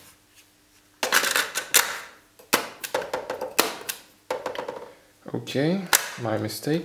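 A cassette clatters as it is slipped into a player.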